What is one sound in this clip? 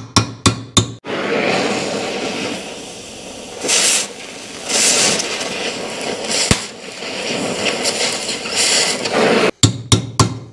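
An arc welder crackles and sizzles steadily.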